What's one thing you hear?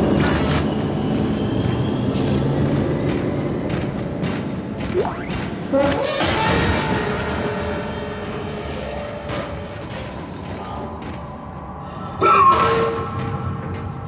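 Heavy boots clank slowly on a metal floor.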